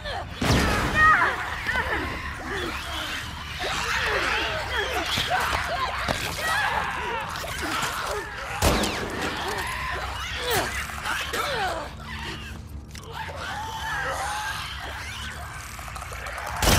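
Creatures shriek and snarl close by.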